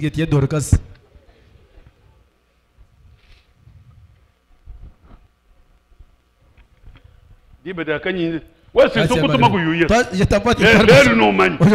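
An older man preaches with animation through a microphone, with long pauses.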